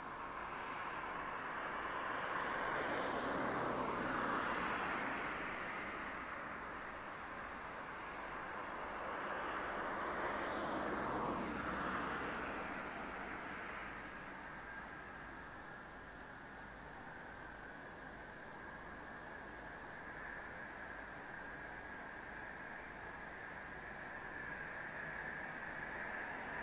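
A four-engined jet roars as it flies low toward the listener.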